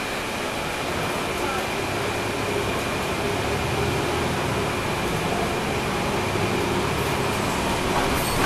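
A bus engine revs up as it pulls away.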